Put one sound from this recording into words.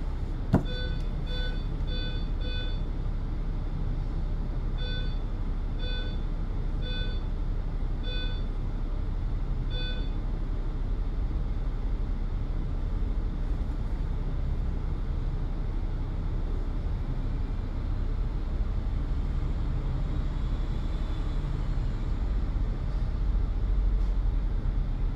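Traffic rumbles steadily in the distance.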